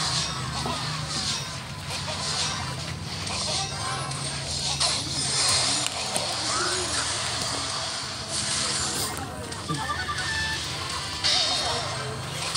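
Game battle effects clash, zap and crackle.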